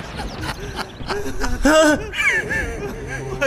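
A man cries out in distress close by.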